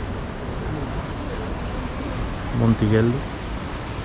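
Sea waves wash against a wall.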